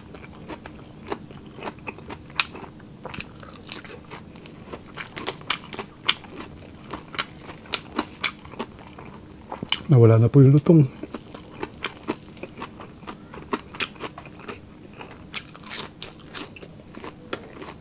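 Crispy fried skin crackles as a man tears it apart.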